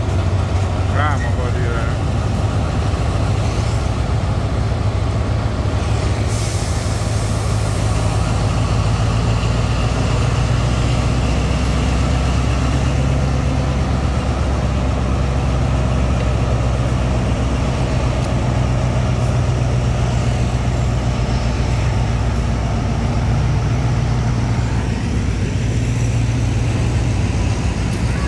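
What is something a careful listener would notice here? Train wheels clatter along the rails.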